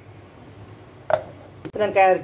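A plastic lid clicks onto a metal jar.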